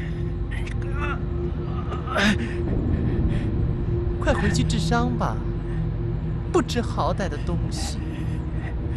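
A young woman speaks mockingly, close by.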